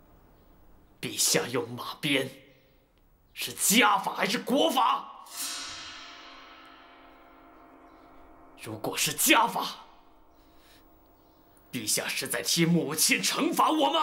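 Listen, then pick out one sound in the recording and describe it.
A young man speaks tensely and up close.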